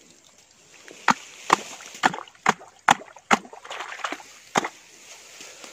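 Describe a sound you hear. Hands splash and slap in shallow muddy water.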